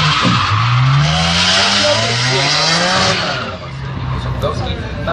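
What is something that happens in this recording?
Car engines rev hard at a distance, rising and falling in pitch.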